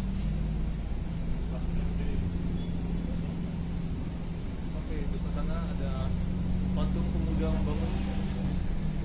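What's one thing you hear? A bus engine hums steadily from inside the cabin.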